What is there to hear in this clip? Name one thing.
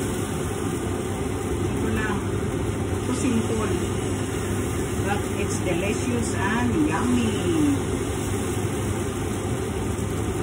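A ladle scrapes against a bowl.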